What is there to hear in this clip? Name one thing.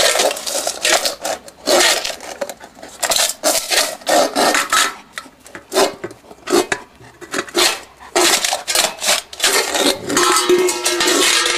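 A metal bowl scrapes and clatters on concrete.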